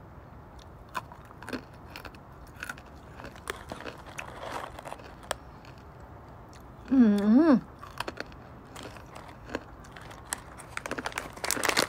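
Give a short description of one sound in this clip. A young woman chews crunchy food.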